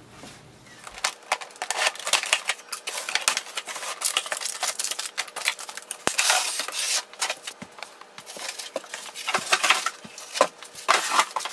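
Cardboard and paper rustle and scrape as a box is opened and unpacked.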